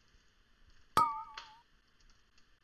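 A magic spell bursts with a sharp ringing chime.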